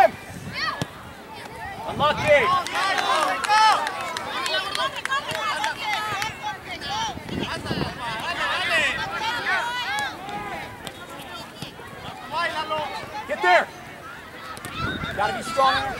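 A soccer ball thuds as it is kicked.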